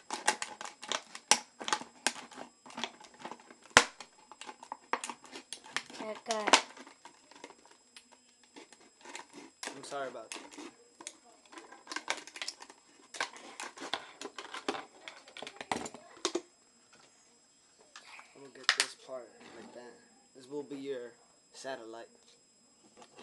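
Plastic crinkles and clicks as hands handle a small object.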